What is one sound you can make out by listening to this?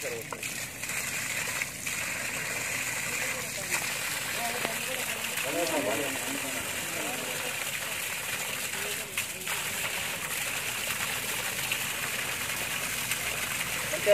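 Water gushes from a pipe and splashes onto the ground.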